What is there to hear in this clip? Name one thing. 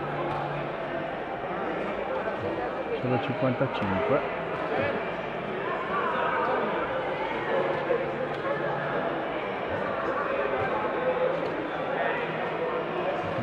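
Several people talk in the background of a large echoing hall.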